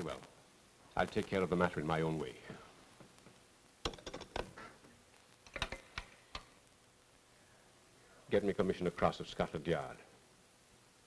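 An older man speaks firmly into a telephone.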